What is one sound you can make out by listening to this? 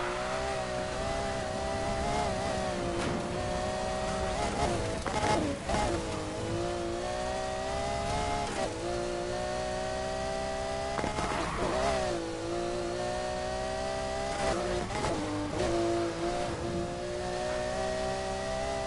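A sports car engine roars at high revs, dropping briefly with each gear shift.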